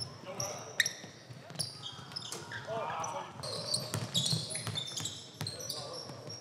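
A basketball thumps on a wooden floor.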